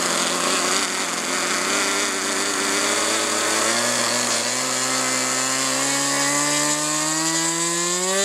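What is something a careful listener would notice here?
A small jet engine whines loudly, its pitch rising steadily as it spools up.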